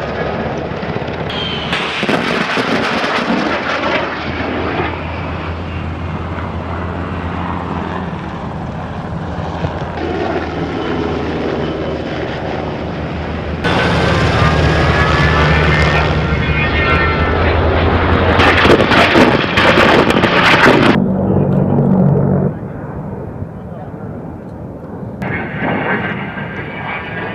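A jet engine roars loudly overhead and fades.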